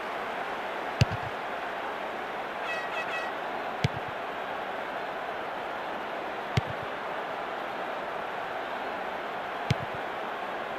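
A football is kicked with short, dull thuds.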